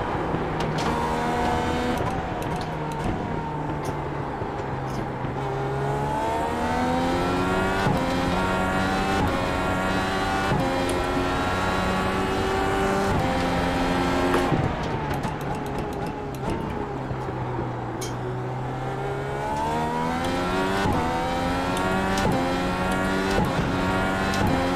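A racing car engine screams, rising in pitch and dropping with each gear shift.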